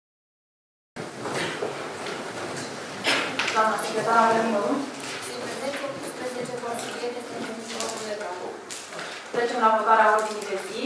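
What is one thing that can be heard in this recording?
Several adults talk among themselves in a large room.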